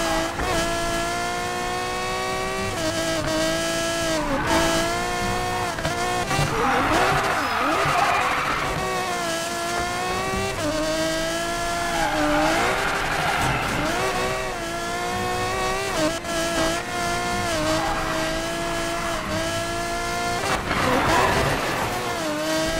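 A racing car engine roars at high revs, shifting gears.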